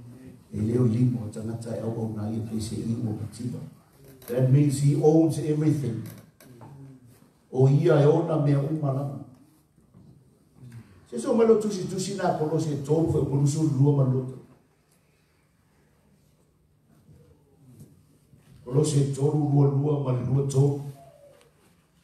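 A man speaks through a microphone in bursts, with pauses, in a large echoing hall.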